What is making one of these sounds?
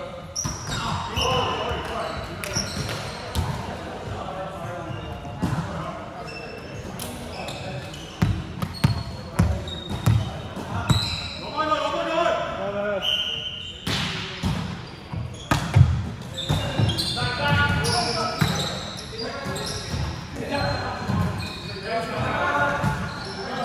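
Young men call out and talk across a large echoing hall.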